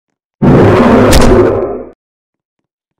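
A bat swings through the air with a loud whoosh.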